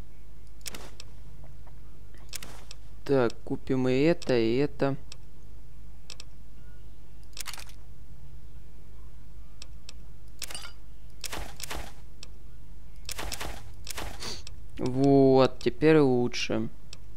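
Short soft clicks sound as menu items are selected.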